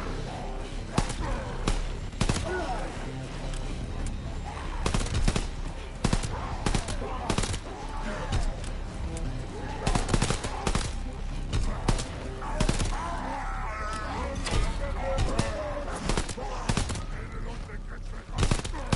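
Pistol shots crack in quick bursts.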